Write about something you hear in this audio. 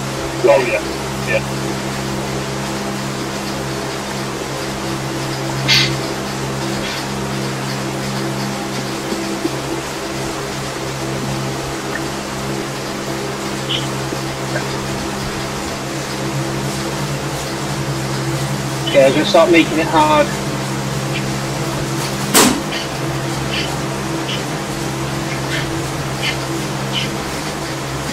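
A bike trainer whirs with a steady low hum.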